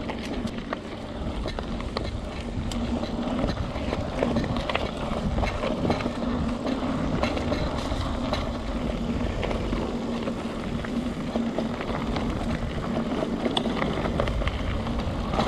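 Bicycle tyres roll fast over a bumpy dirt trail.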